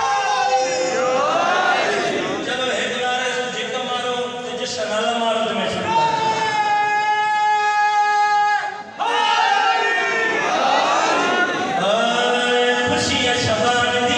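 A crowd of men chants along in response.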